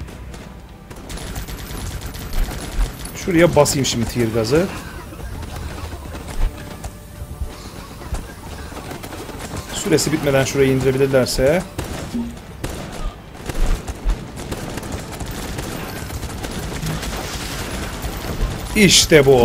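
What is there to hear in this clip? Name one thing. Gunfire and explosions rattle and boom from a video game.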